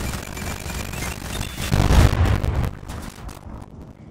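Burning debris crackles and hisses.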